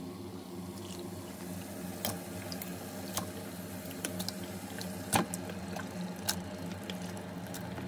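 Chunks of raw meat thud into a metal pot.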